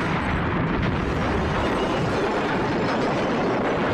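A vehicle crashes and scrapes over on its side.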